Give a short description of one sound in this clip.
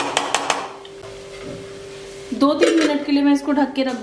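A metal lid clanks onto a pan.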